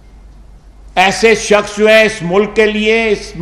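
An elderly man speaks firmly into microphones.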